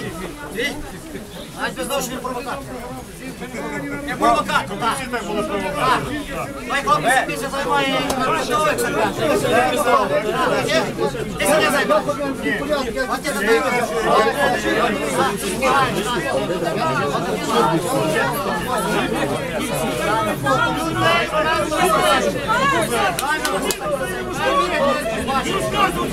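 A crowd of men argue loudly and talk over each other close by.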